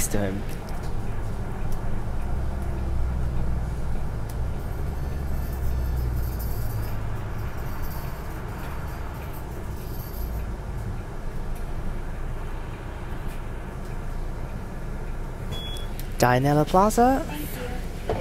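A bus engine hums and rumbles steadily as the bus drives along.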